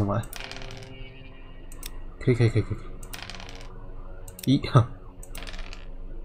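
A small die rolls and clatters across a board.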